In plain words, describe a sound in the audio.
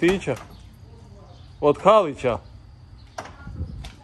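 A van door swings open.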